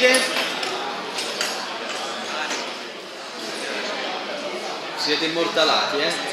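A crowd of young men and women chatters nearby in a large room.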